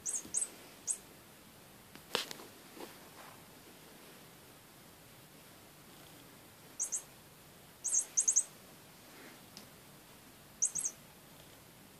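A small bell on a cat toy jingles in short bursts.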